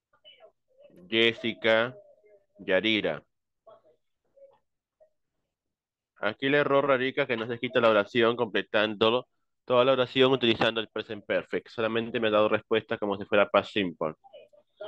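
A man speaks steadily over an online call.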